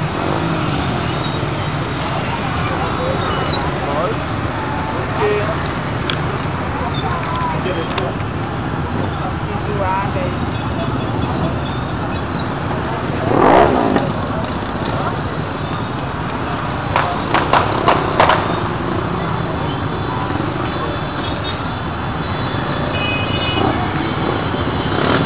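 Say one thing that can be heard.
Many small motorcycle engines run in a dense crowd outdoors.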